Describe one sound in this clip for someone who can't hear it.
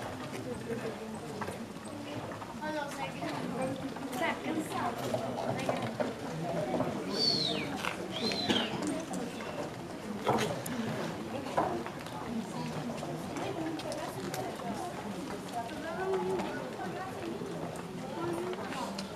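Footsteps shuffle on cobblestones.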